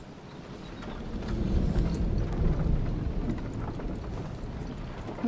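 A wooden wagon rumbles and creaks over a rocky track.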